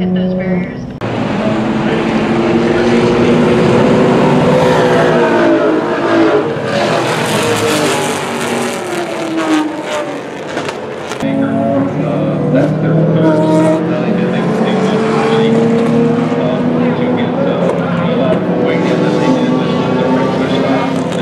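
Engines rise and fall in pitch as drivers shift gears.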